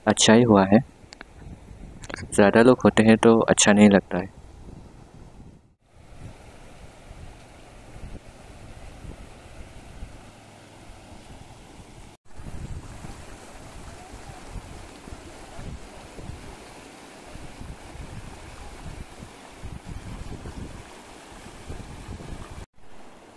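A shallow river rushes and splashes over stones.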